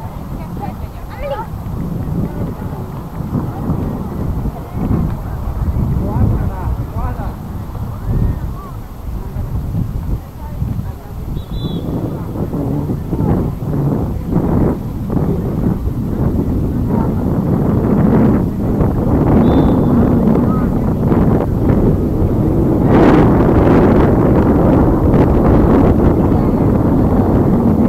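Adult spectators talk and call out nearby outdoors.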